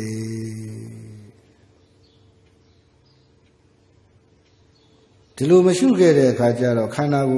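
A man chants in a slow, drawn-out voice through a microphone.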